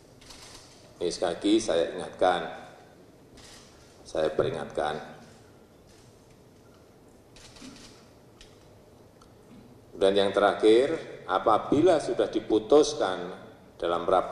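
A middle-aged man speaks calmly and firmly into a microphone, with pauses.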